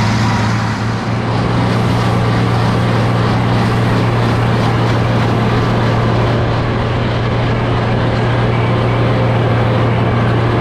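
A mower rattles and whirs as it cuts grass.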